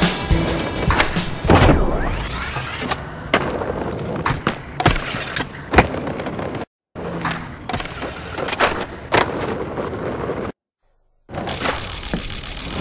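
Skateboard wheels roll and grind along concrete.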